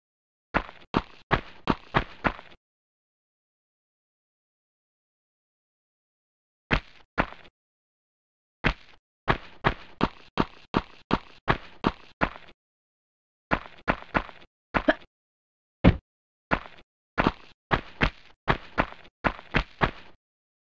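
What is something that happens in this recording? Footsteps slap quickly on a hard stone floor, echoing off the walls.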